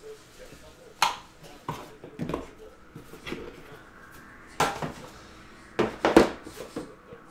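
Cardboard boxes knock and tap as they are handled.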